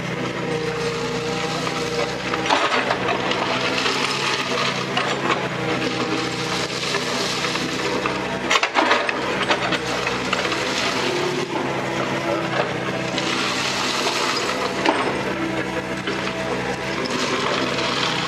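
A diesel engine of an excavator rumbles steadily close by.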